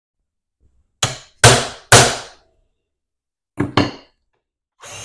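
A hammer taps sharply on a metal punch several times.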